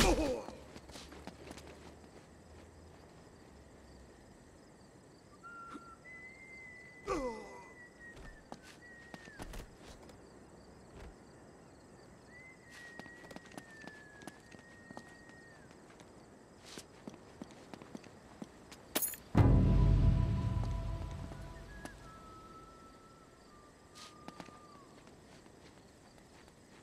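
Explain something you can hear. Soft footsteps tap on a stone floor.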